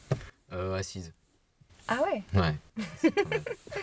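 A young woman laughs happily nearby.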